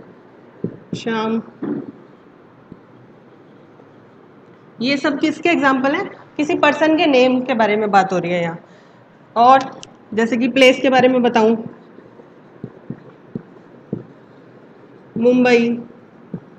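A woman speaks clearly and calmly into a close microphone, explaining.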